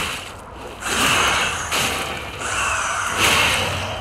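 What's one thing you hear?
An explosion bursts with crackling sparks.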